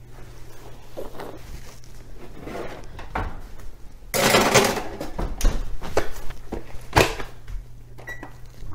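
A metal baking tray clatters and scrapes on an oven rack.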